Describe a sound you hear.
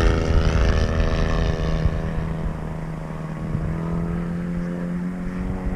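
A small aircraft engine drones overhead.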